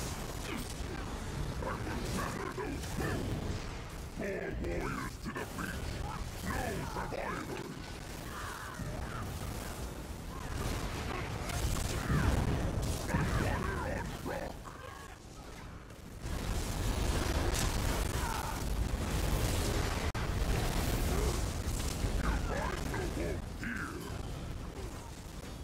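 Magic blasts crackle and boom in a busy fight.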